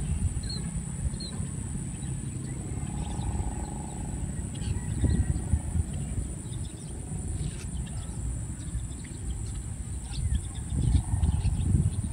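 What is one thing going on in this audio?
Wind gusts and rumbles across an open outdoor space, buffeting the microphone.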